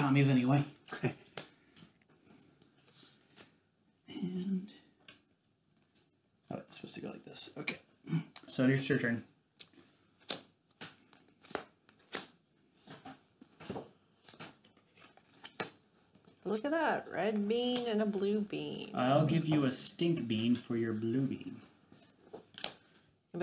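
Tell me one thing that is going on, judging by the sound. Playing cards slap and click onto a wooden table.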